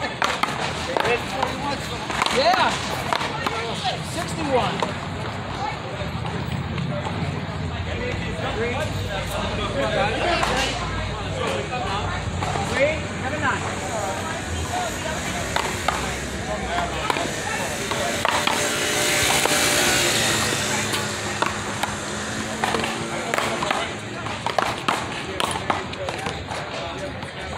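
A ball smacks sharply against a wall and paddles with echoing cracks.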